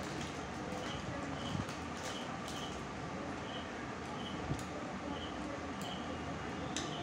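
Food rustles and clicks softly against a plate.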